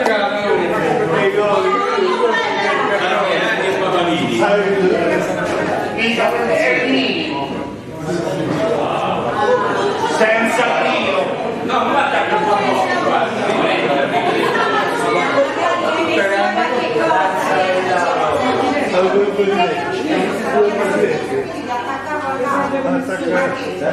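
Several adults talk over one another, loudly and with animation, in an echoing room.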